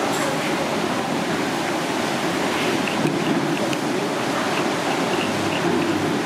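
Chopsticks clink against a ceramic bowl while stirring a sauce.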